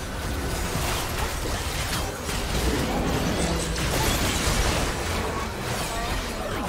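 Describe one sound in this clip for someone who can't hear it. Magic blasts and weapon hits clash in a busy battle.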